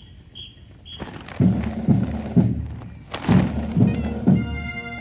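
Marching drums beat loudly close by.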